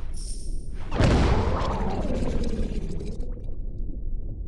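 A deep explosion booms and rumbles away.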